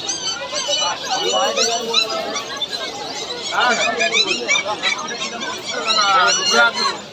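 Caged birds chirp and twitter nearby.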